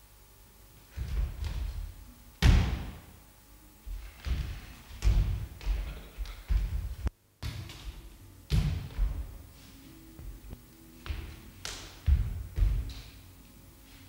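Bare feet thump and slap on a wooden floor.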